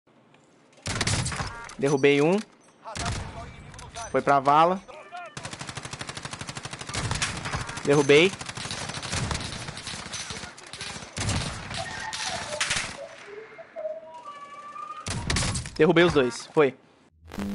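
A sniper rifle fires sharp, loud shots.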